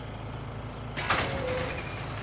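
A metal switch clunks.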